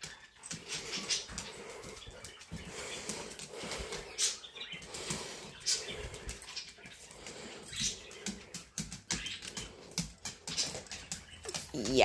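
A dog's collar tags jingle.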